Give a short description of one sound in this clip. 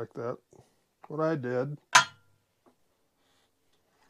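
Metal pliers clatter onto a metal table.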